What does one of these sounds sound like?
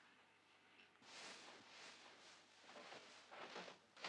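A heavy coat rustles and drops to the floor.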